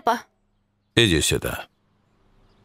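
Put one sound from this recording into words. An elderly man answers warmly.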